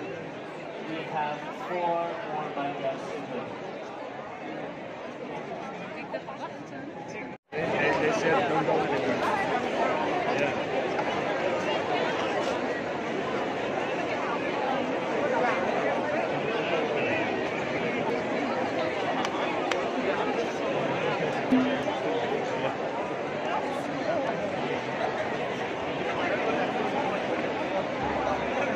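A large crowd outdoors cheers and chatters loudly.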